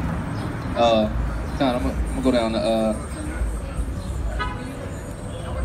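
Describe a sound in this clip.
A man reads aloud loudly nearby, outdoors.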